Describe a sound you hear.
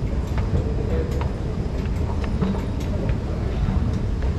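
An escalator hums and rumbles steadily.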